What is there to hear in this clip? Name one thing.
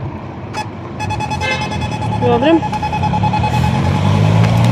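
A crossing signal beeps in a quick steady rhythm.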